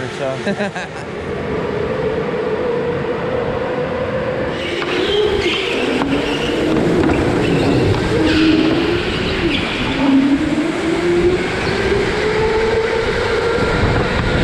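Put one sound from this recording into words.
Go-kart motors whine and rise in pitch as the karts speed up.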